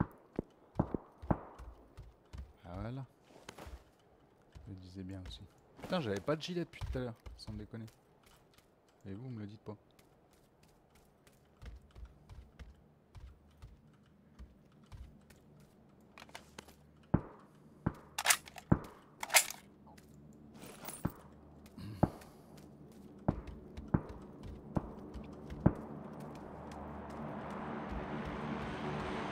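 Footsteps knock on a wooden floor.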